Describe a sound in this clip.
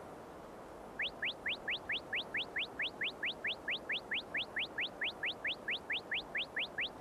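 Quick rising electronic beeps repeat steadily.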